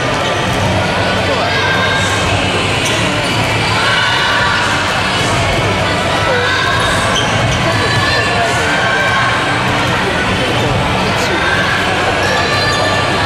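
A crowd of children chatters and shouts in a large echoing hall.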